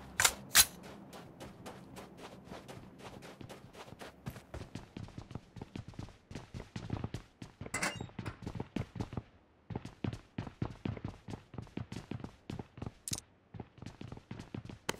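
Quick footsteps thud steadily on a hard floor.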